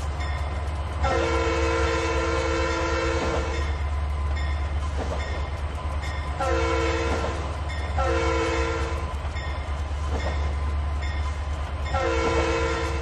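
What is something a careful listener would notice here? A locomotive horn blows several long blasts.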